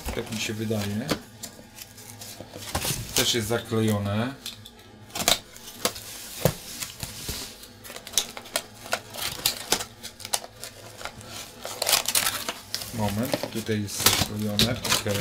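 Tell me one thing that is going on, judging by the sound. Cardboard scrapes and clicks as a box is handled and opened.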